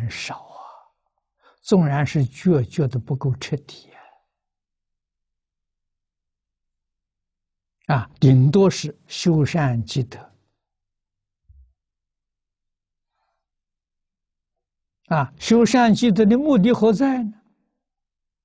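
An elderly man speaks calmly into a microphone, with long pauses between phrases.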